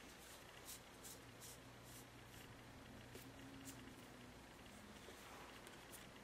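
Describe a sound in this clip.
Playing cards slide and rustle softly as they are handled.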